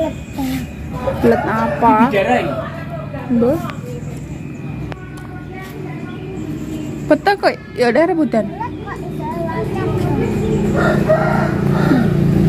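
Young girls chatter and call out nearby.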